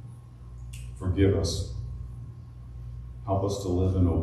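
An older man reads aloud calmly through a microphone.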